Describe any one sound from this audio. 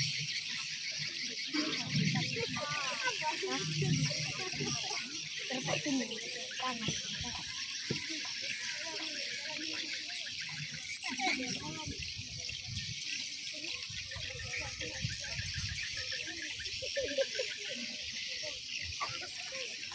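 A crowd murmurs and chatters outdoors at a distance.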